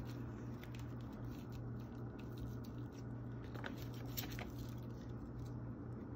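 A knife chops through an onion and taps lightly against a plate.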